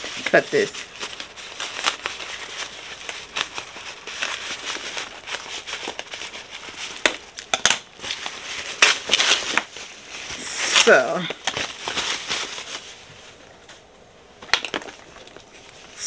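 Fabric rustles in someone's hands.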